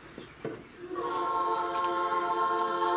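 A choir begins to sing a sustained chord.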